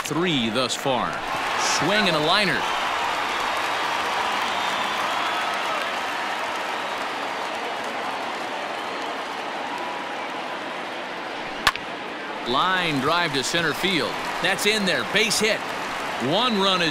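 A crowd murmurs and cheers steadily in a large stadium.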